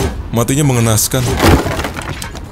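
A wooden crate smashes apart with a loud crack.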